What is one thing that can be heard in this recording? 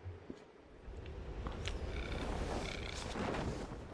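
A parachute snaps open with a flapping rush.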